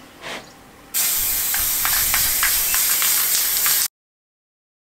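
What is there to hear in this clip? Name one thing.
An aerosol can sprays with a steady hiss.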